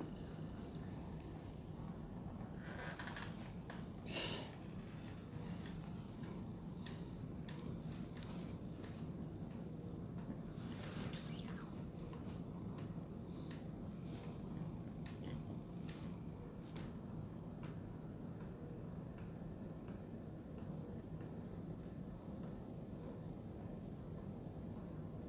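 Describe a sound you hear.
A machine hums steadily and low.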